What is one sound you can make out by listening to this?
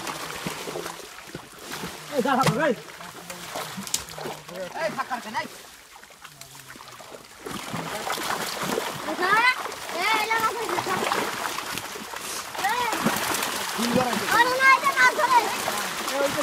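Water splashes as a net is hauled through it.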